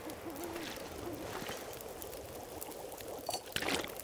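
A fire crackles and pops.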